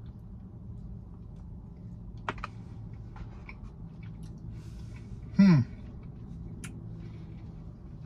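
A man bites into a soft cookie and chews.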